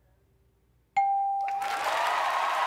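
A bright electronic chime rings once.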